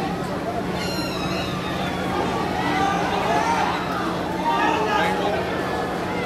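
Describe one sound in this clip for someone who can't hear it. A large crowd cheers and chatters throughout a stadium.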